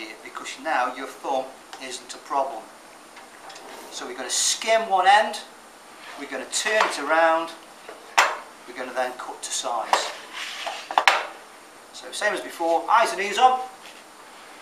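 An elderly man speaks calmly and explains close by.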